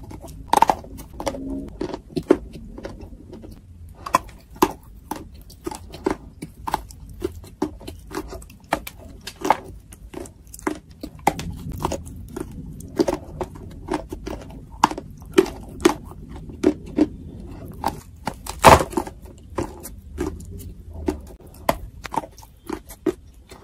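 A woman chews loudly and wetly close to a microphone.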